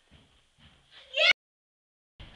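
A young child shrieks loudly up close.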